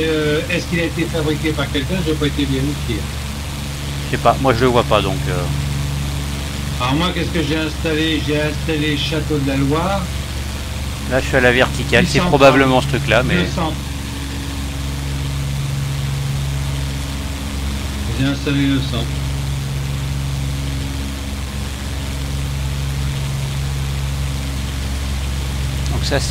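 A propeller aircraft engine drones steadily.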